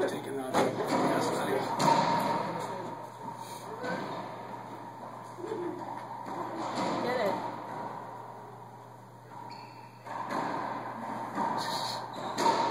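A racquetball smacks sharply against the walls of an echoing court.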